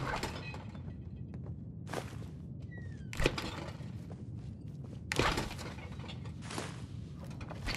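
A fridge door opens and thuds shut several times.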